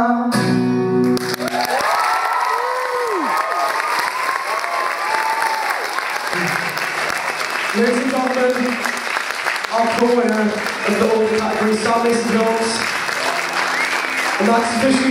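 A crowd cheers and applauds.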